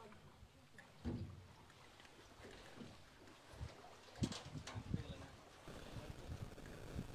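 Knocks and thumps sound on a metal boat.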